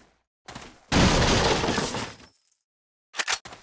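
A wooden crate smashes and splinters loudly.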